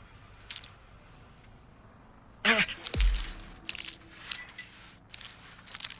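Leafy plants rustle as someone pushes through them.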